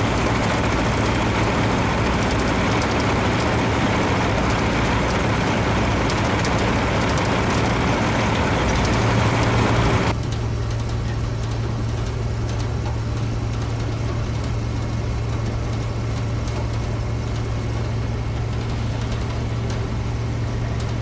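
A heavy engine hums steadily nearby.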